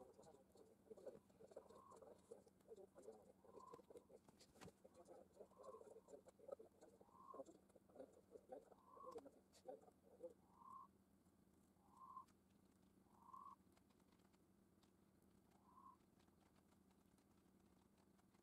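Beetles scrabble and rustle over wood chips.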